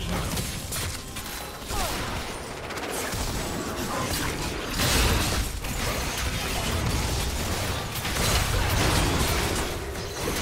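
Magic blasts and weapon hits burst and crackle rapidly in a video game battle.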